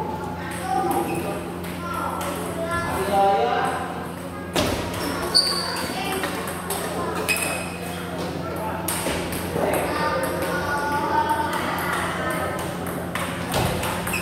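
Sneakers squeak and shuffle on the floor.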